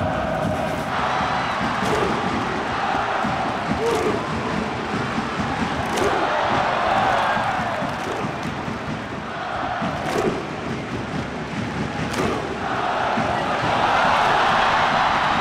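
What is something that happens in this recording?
A large stadium crowd cheers and chants.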